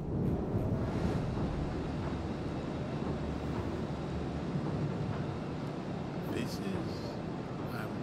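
Water rushes and splashes against a moving ship's hull.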